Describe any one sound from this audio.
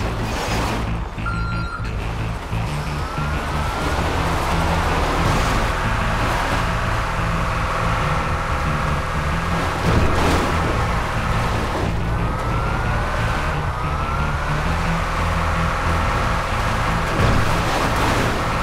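A diesel box truck engine labours uphill.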